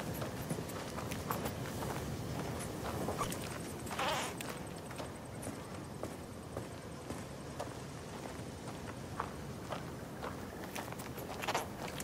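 Wind blows steadily outdoors.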